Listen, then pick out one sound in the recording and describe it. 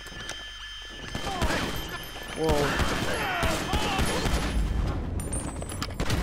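Gunshots crack in quick bursts, echoing off hard walls.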